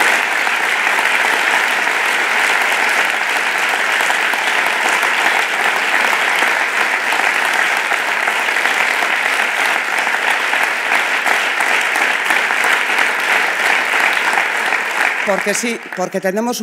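A crowd applauds loudly in a large space.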